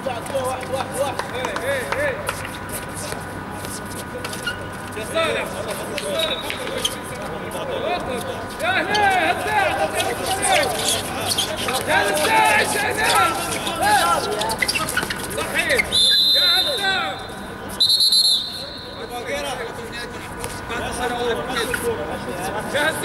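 A ball bounces and thuds on a hard court.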